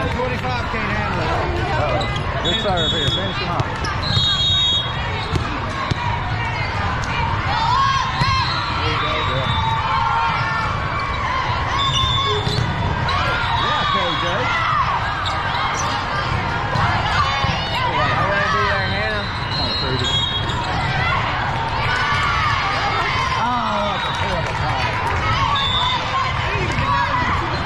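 Many voices chatter and call out across a large echoing hall.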